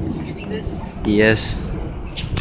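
A young boy calls out briefly nearby.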